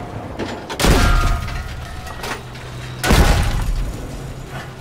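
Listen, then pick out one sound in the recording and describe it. Loud explosions boom and crash.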